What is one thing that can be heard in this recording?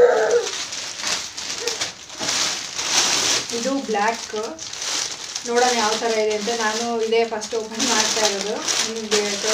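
A plastic wrapper crinkles and rustles in a young woman's hands.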